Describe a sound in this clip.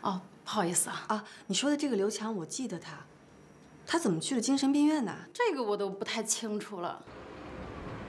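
A young woman speaks hesitantly and with concern, close by.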